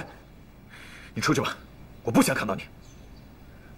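A young man speaks in a low, cold voice, close by.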